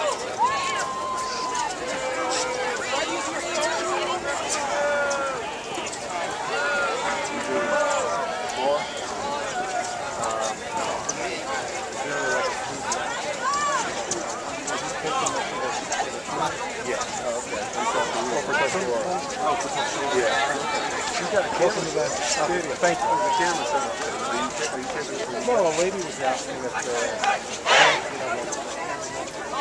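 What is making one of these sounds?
A crowd of people chatters and calls out nearby outdoors.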